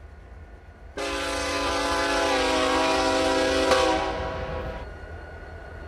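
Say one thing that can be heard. A locomotive horn blares loudly, then stops.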